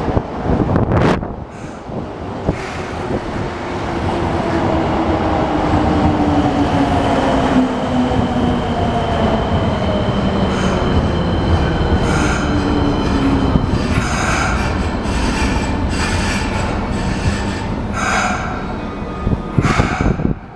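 A machine rumbles and whirs steadily nearby.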